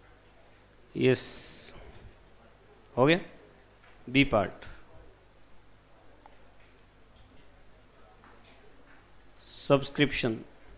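A man speaks in short bursts, lecturing.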